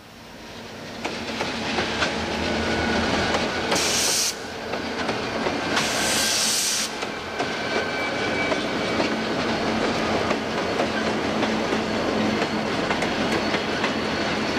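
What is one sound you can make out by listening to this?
Steel wheels clatter and click over rail joints.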